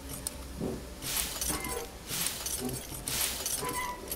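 Metal locker doors rattle open.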